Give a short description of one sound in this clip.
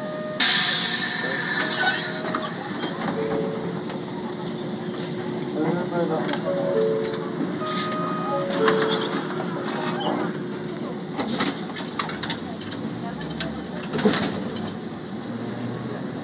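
Tram wheels clatter and knock over the rail joints.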